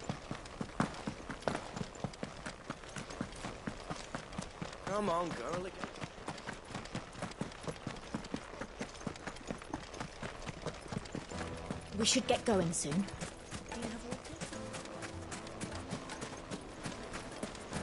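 Quick footsteps run over sand and stone.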